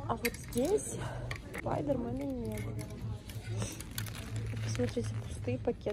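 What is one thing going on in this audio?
Plastic wrappers crinkle and rustle as a hand handles them.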